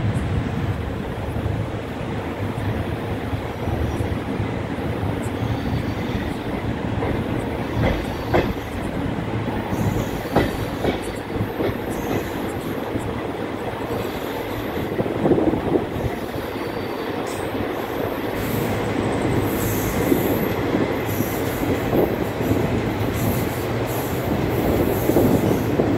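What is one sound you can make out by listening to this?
A passenger train rolls along the rails with a low rumble.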